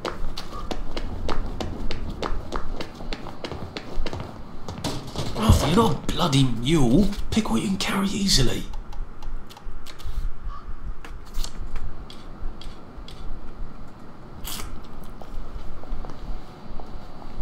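Footsteps tap steadily on stone pavement.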